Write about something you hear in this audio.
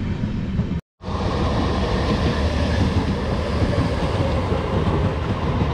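A train rolls past on nearby tracks.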